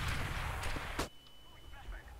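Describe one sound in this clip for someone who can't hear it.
A stun grenade bangs sharply.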